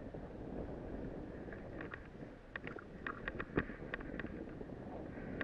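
Wind rushes loudly past a microphone.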